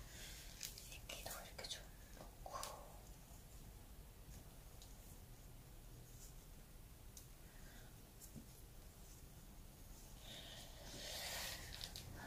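Gloved hands rustle while pressing moss and soil into a pot.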